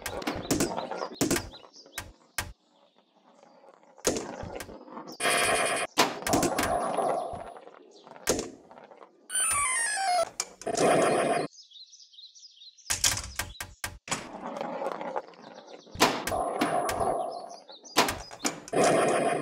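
Electronic pinball sound effects chime and jingle.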